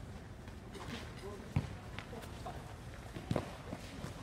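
A football is kicked with dull thumps.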